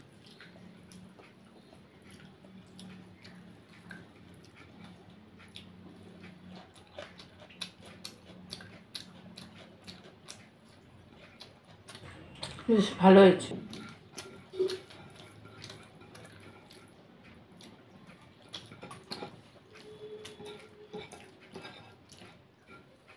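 A woman chews and smacks her lips close to the microphone.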